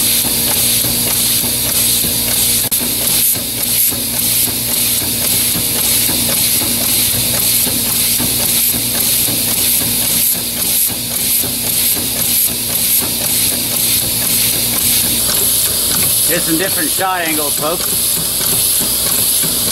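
A small air-powered engine runs with a rapid, steady chugging.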